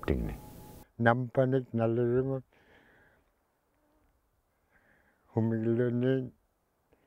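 An elderly man speaks softly outdoors.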